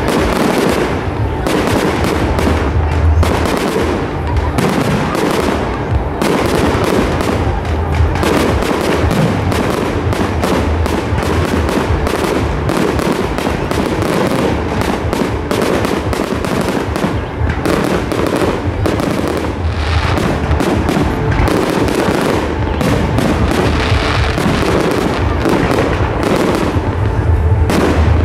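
Fireworks boom and crackle in rapid bursts outdoors.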